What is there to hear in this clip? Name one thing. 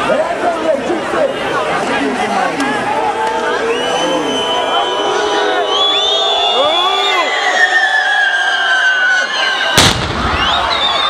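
A large crowd outdoors shouts and cheers loudly.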